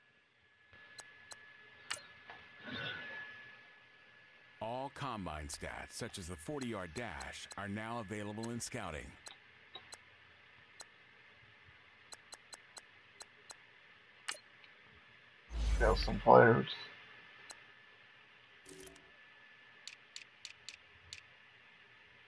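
Short electronic menu clicks tick now and then.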